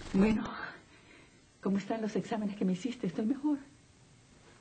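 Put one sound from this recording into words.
A middle-aged woman talks calmly and closely.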